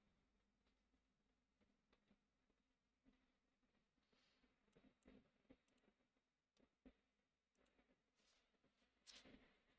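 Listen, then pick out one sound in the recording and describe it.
A hand slides paper across a tabletop.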